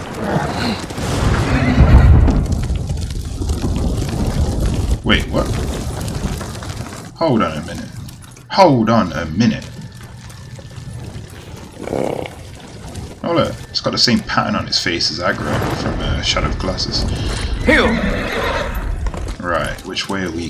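A horse's hooves thud on snowy ground.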